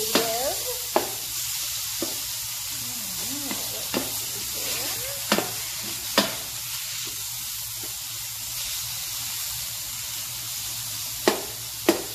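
Ground meat sizzles steadily in a hot pan.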